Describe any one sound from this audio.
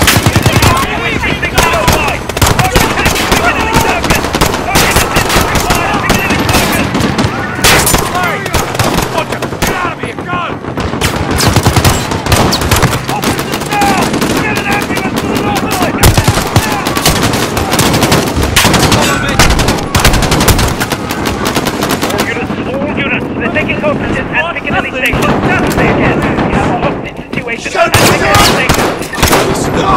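Gunshots fire in quick bursts, sharp and loud.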